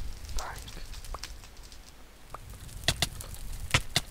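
Fire crackles and pops nearby.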